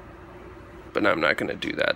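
A hand knocks against a metal heat sink.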